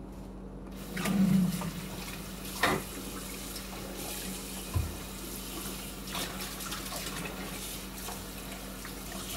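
Dishes clatter and knock in a sink.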